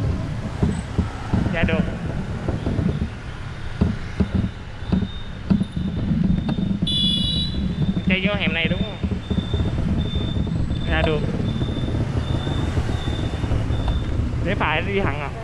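A motorbike engine hums low as the motorbike rides along.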